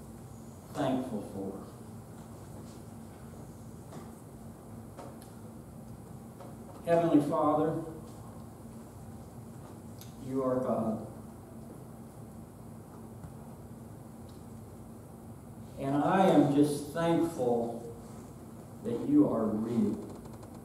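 A middle-aged man speaks calmly in short phrases, with long pauses.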